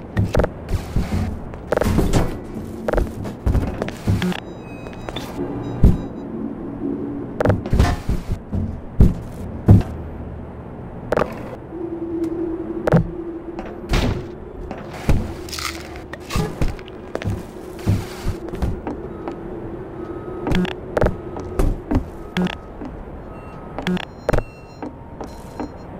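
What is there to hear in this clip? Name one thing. Cardboard boxes thump and knock as they are pushed about.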